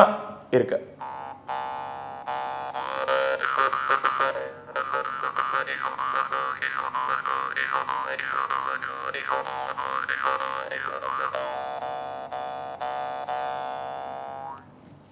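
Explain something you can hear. A man plays a wavering, droning tune on a small mouth instrument.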